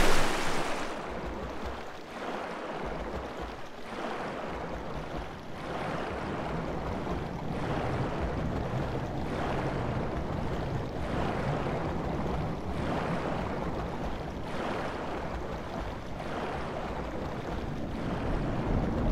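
Water churns and rumbles in a muffled way, as if heard from underwater.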